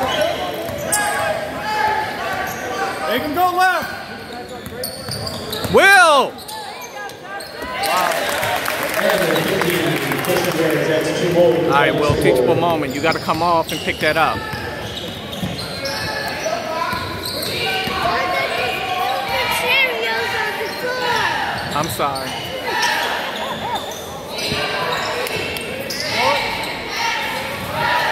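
A crowd of spectators cheers and calls out in an echoing gym.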